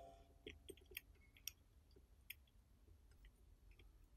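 A soldering iron tip taps and scrapes against a circuit board.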